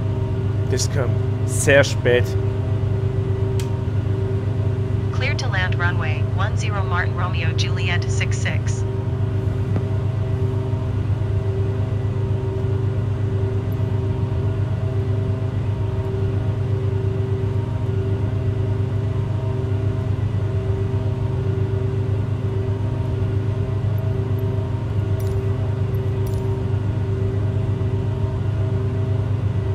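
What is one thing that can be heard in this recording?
Propeller engines drone steadily with a low hum.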